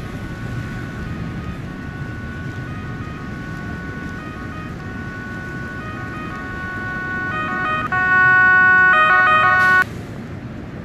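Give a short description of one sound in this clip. A fire engine siren wails in two alternating tones, growing louder and then cutting off suddenly.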